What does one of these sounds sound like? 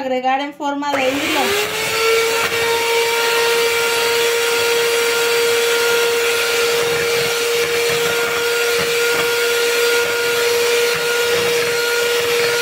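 An electric hand mixer whirs, beating batter in a bowl.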